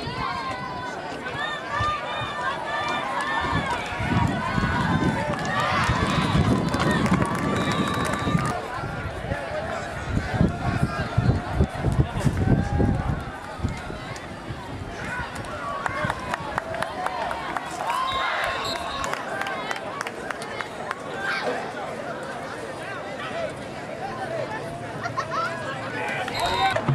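A crowd of people talks and cheers outdoors.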